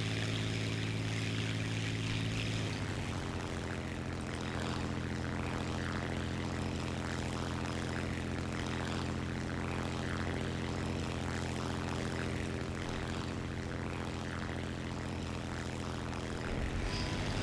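A propeller plane's engine drones steadily, its pitch shifting slightly.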